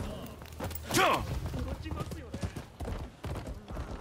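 Hooves clatter on a wooden bridge.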